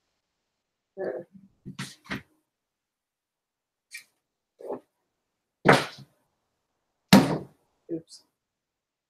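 Books knock softly against a shelf.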